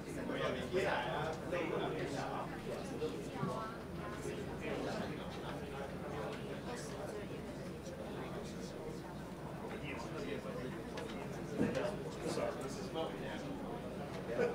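Many men and women chatter at once in a large room.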